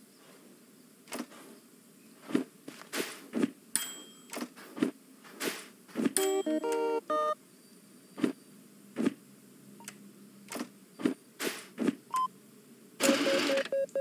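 Buttons click on a machine.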